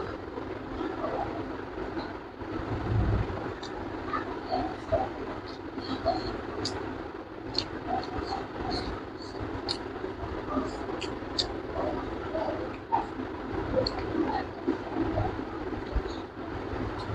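A young man chews and smacks his lips loudly close by.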